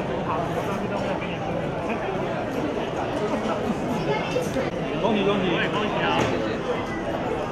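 A crowd of men and women chatter loudly in a busy room.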